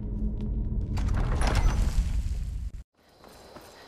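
A heavy stone door grinds open.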